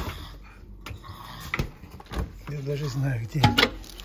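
A freezer door is pulled open.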